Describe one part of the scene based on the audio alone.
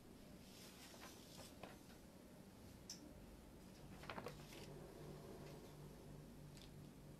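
Keyboard keys click softly.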